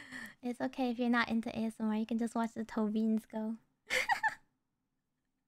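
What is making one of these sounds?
A young woman speaks cheerfully and animatedly into a microphone.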